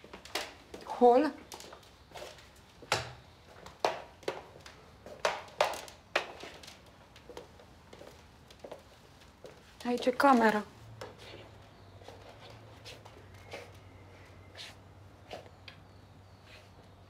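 A white cane taps on a hard floor.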